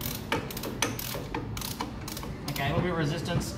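Metal tools clink and tap against an engine.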